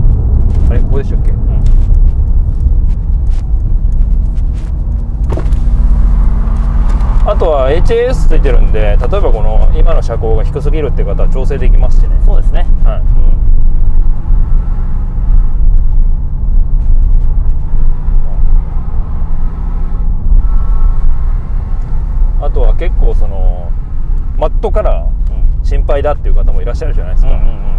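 A car engine roars low and steady from inside the cabin.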